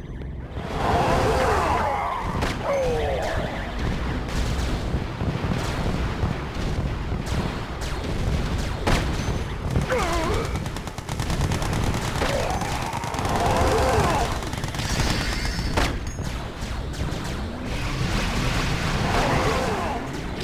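Laser weapons zap and hum in a battle.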